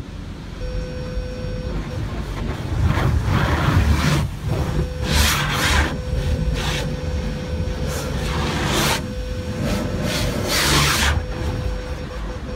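A pressure washer sprays water in loud hissing bursts against a car.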